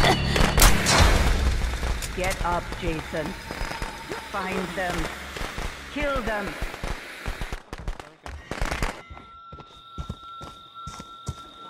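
Flames crackle and hiss.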